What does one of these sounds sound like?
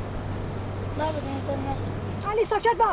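A young boy speaks up.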